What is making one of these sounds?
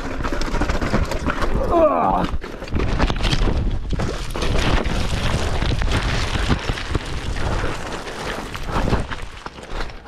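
Bicycle tyres rattle and crunch over a rocky trail.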